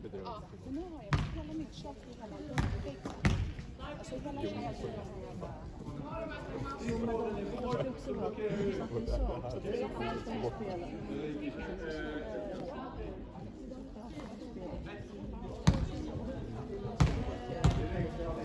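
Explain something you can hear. A basketball bounces with hollow thuds on the floor.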